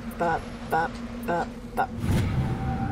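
Short electronic chimes beep several times.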